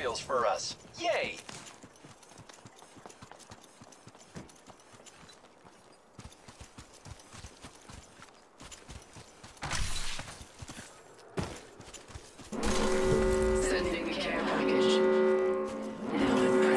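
Footsteps patter quickly over ground and grass.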